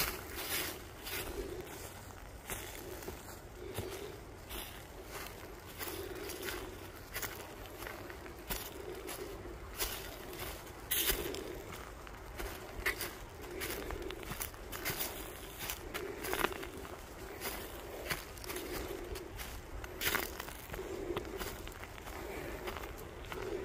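Footsteps crunch steadily on dry leaves along a forest trail.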